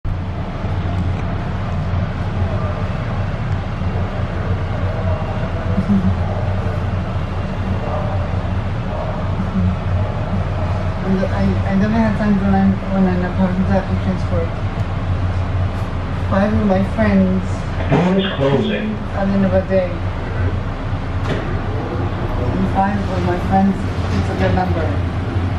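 A train rumbles steadily along its track with a low hum.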